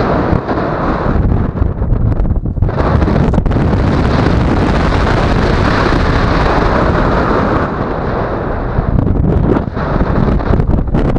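Strong wind rushes and buffets loudly past, outdoors high in the air.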